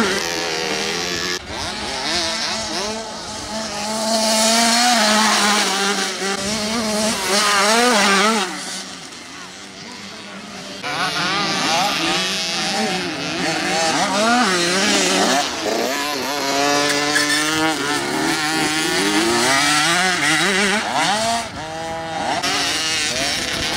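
A small dirt bike engine whines and revs up and down as it races past.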